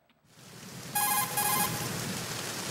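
A radio receiver beeps in quick electronic chirps.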